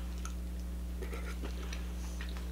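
A young woman sucks and slurps crab meat close to a microphone.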